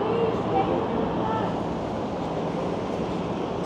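A car drives by on the street.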